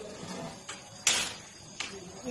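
A gas stove igniter clicks.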